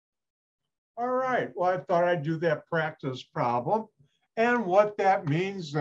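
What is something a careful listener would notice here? An older man speaks calmly through an online call microphone.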